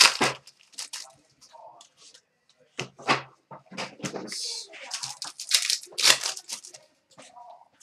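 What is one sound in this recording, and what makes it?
Trading cards rustle and flick in a young man's hands.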